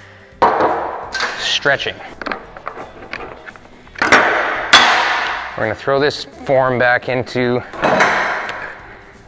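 Metal clanks and bangs sharply, with a ringing echo.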